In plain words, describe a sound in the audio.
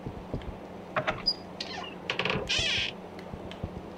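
A wooden cabinet door creaks open.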